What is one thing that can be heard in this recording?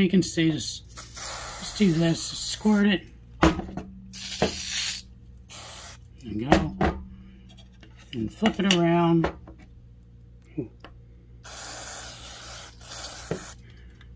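An aerosol can sprays with a sharp hiss in bursts.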